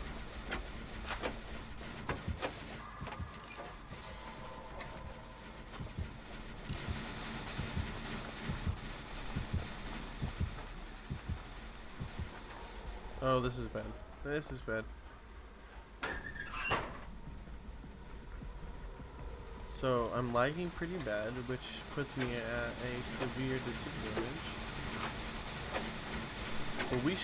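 Metal parts rattle and clank as a machine is repaired.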